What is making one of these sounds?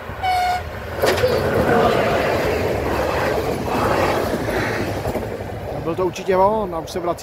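A passenger train rumbles past close by, wheels clattering on the rails.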